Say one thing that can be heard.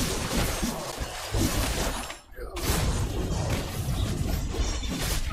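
Game battle sound effects clash and crackle rapidly.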